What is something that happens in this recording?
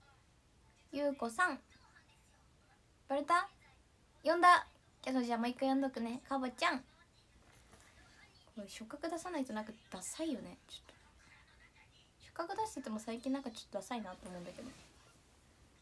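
A young woman speaks calmly and close to a microphone, in short bursts.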